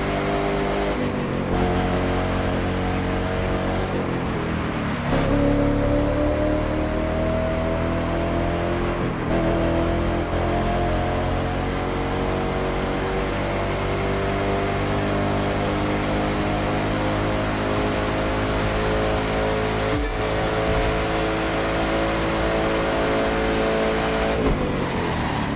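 A sports car engine briefly dips in pitch as gears shift.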